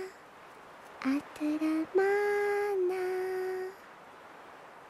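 A baby cries in short, wavering wails close by.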